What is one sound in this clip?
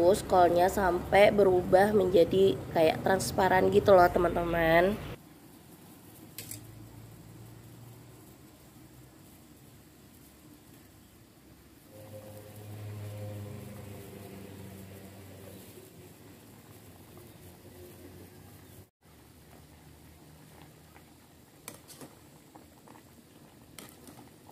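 Water bubbles and simmers in a pot.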